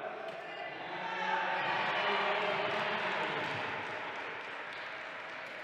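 Spectators cheer and applaud in a large echoing hall.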